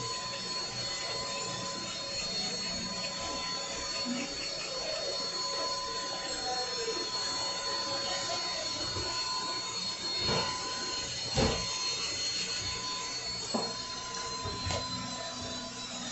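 An electric nail drill whirs with a steady high whine.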